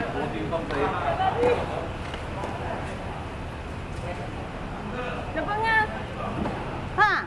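Men call out to each other across the court.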